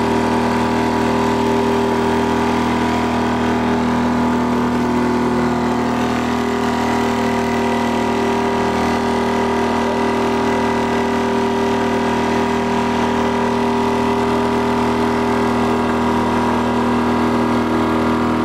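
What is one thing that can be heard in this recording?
Water splashes and rushes past a moving boat.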